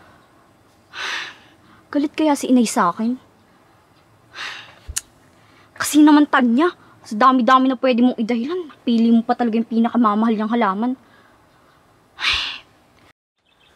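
A young woman sighs heavily.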